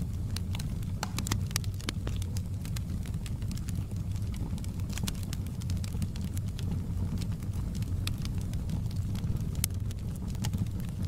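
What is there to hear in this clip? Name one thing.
Logs crackle and pop in a burning fire.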